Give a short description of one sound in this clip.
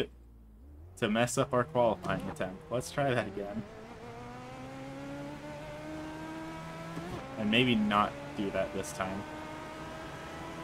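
A race car engine revs up and drones steadily as the car speeds up.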